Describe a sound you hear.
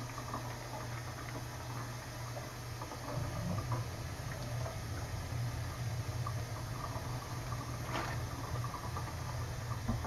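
Dishes clink and scrape in a metal sink.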